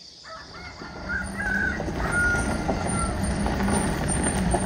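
A truck engine rumbles as it drives slowly closer.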